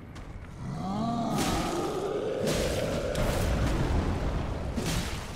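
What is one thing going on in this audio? A huge beast growls and roars deeply.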